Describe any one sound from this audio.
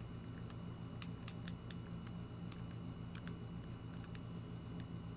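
Short menu clicks tick several times.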